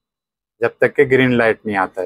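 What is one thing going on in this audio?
A switch clicks on a machine.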